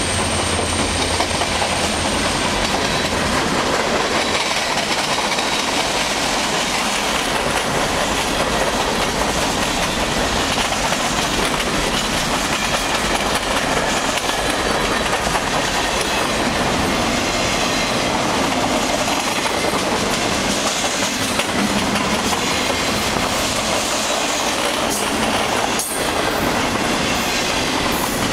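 A long freight train rumbles past close by, its wheels clattering on the rails.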